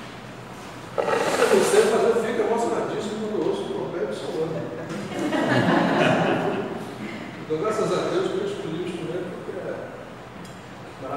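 A man speaks with animation in an echoing room.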